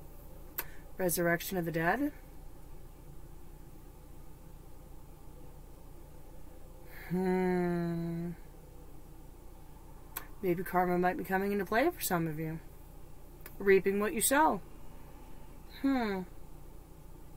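A woman speaks calmly and thoughtfully, close by.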